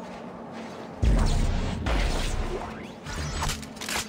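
A heavy gun fires with a loud, booming blast that rumbles away.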